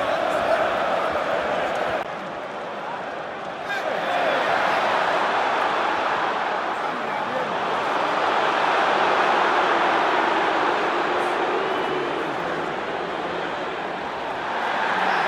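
A large stadium crowd roars and chants loudly all around.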